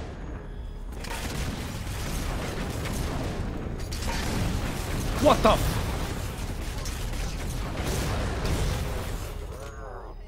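Gunfire and explosions from a video game crash and boom.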